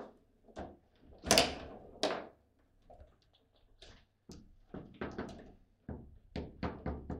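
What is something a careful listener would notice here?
Foosball rods rattle and thud as they are spun and slammed.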